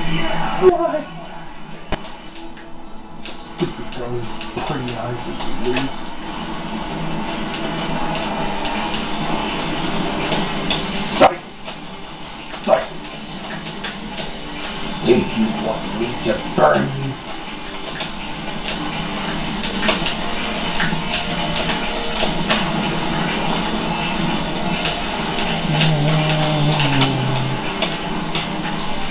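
Racing game engines whine and roar steadily through a television speaker.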